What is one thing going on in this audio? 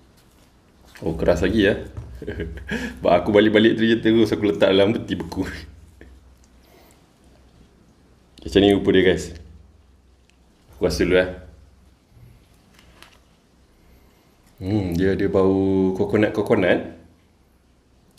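A man talks calmly close to a microphone.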